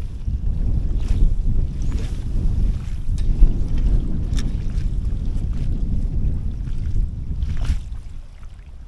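Wind blusters loudly into a microphone outdoors.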